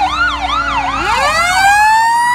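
A fire engine siren wails and rises up.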